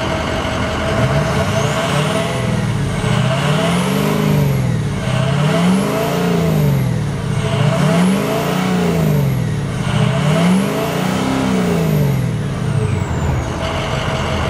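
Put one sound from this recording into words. A truck engine revs up and down again and again.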